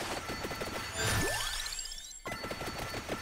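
A bright electronic chime rises quickly in pitch.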